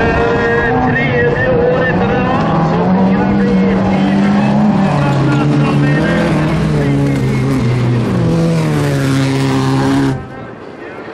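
A race car engine roars loudly, revving up and down through gear changes.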